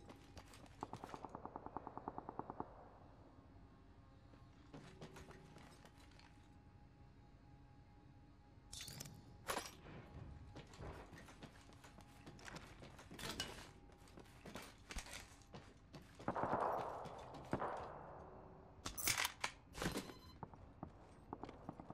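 Footsteps clatter on a metal floor.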